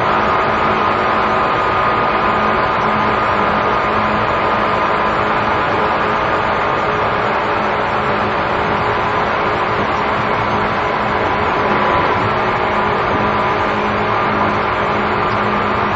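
An electric train hums steadily while standing still.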